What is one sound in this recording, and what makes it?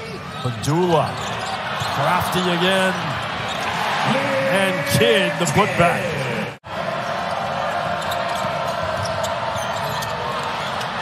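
A large indoor crowd cheers and murmurs in an echoing arena.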